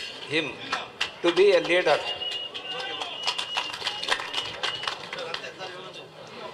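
An elderly man speaks through a microphone to a group.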